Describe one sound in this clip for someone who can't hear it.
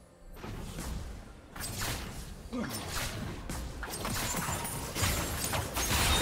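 Magic spells whoosh and crackle in a fast game battle.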